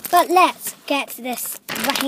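A plastic wrapper crinkles in a hand.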